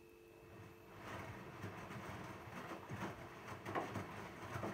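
Laundry tumbles and thumps inside a turning washing machine drum.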